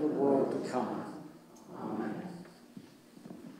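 A group of people recite together in a hall.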